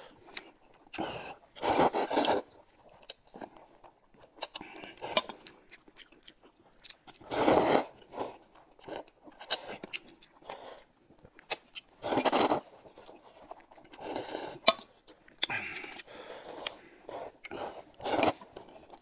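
A man slurps noodles loudly, close by.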